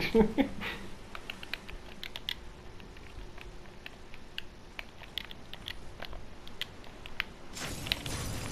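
Menu selections click softly, one after another.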